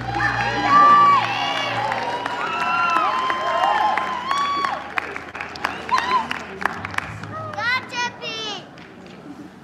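Audience members cheer and whoop loudly.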